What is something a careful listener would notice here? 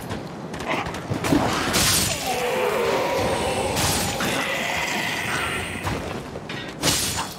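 Metal blades clash and slash in a fight.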